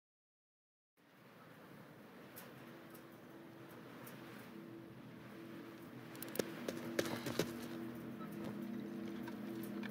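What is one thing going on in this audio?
Footsteps tread slowly on the ground.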